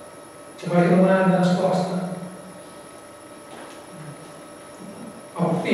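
A man speaks into a microphone, pausing between phrases.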